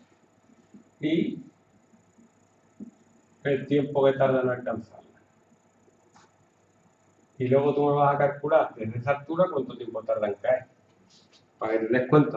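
A young man talks calmly, explaining.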